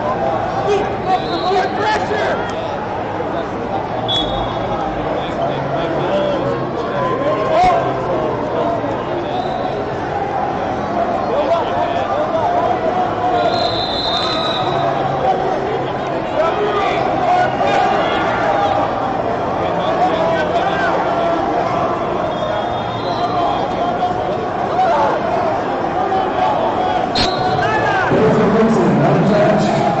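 A crowd murmurs and chatters in a large echoing hall.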